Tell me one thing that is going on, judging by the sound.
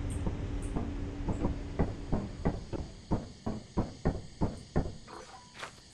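Footsteps thud on a wooden walkway.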